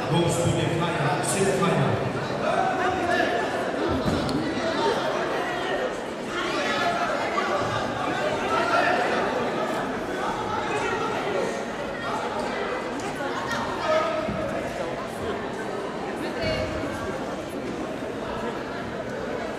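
Two wrestlers thump and scuffle on a padded mat.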